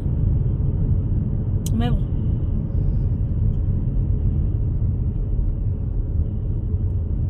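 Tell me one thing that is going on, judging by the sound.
A car engine and road noise rumble steadily from inside a moving car.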